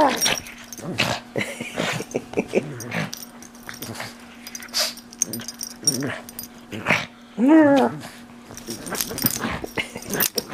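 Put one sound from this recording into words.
A dog chews and gnaws at a plush toy.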